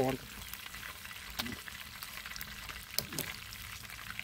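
A fork scrapes and clinks against a metal pan while stirring food.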